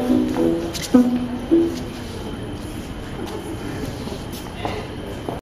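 Shoes shuffle and scrape softly on a stone floor.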